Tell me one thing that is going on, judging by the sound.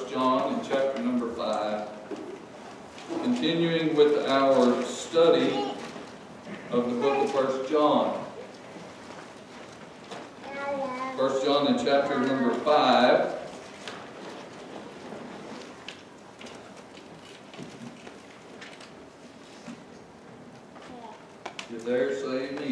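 A middle-aged man speaks slowly and earnestly into a microphone, with pauses, in a room with a slight echo.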